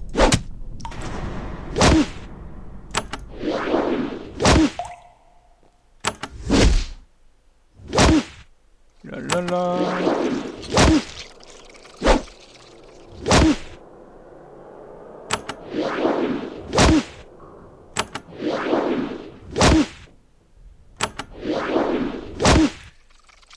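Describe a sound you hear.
Blows land in a fight again and again, each with a sharp thud.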